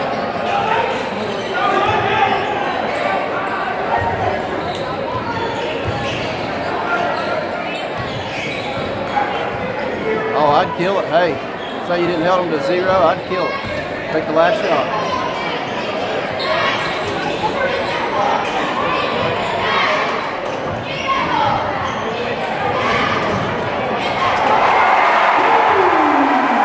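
Sneakers squeak on a hardwood basketball court.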